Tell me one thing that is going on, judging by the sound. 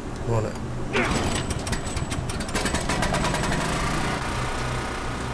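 A generator engine sputters and starts running.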